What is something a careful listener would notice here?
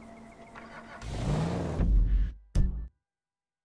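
A car engine starts and revs loudly.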